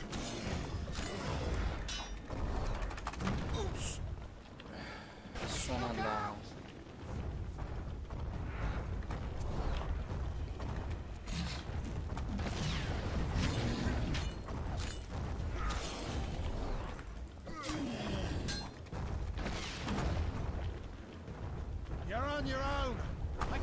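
Blows and magic blasts strike with loud bursts.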